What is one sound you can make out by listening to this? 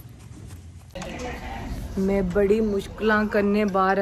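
A young woman talks cheerfully into a nearby microphone.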